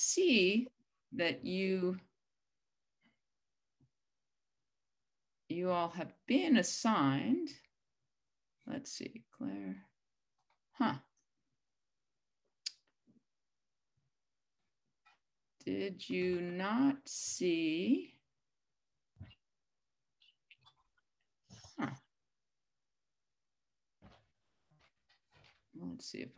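An older woman speaks calmly and haltingly, heard through an online call.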